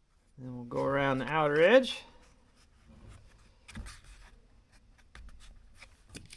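A cardboard piece rustles and taps in someone's hands.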